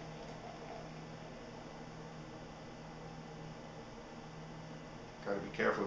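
Beer pours from a can into a glass, gurgling and fizzing.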